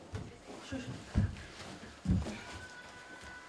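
Children's footsteps thump on the floor.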